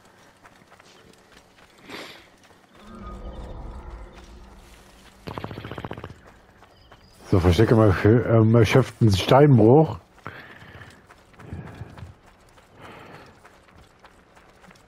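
Footsteps run quickly over gravel and stony ground.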